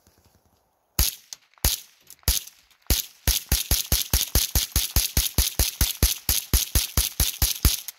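A rifle fires rapid sharp shots in quick succession.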